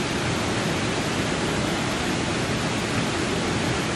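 A person splashes down into water.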